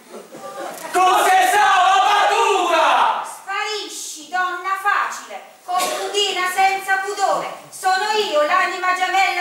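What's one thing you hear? A man shouts loudly and excitedly on a stage.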